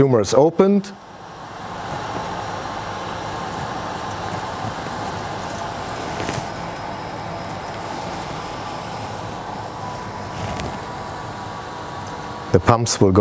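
Electric pumps hum steadily.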